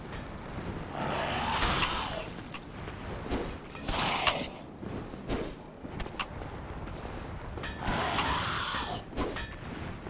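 A creature lets out loud, rasping screeches in bursts.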